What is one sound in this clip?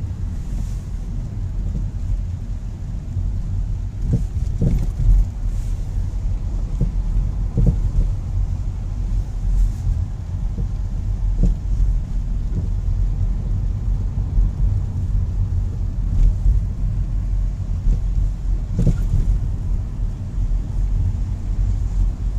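A car engine rumbles steadily from inside the car.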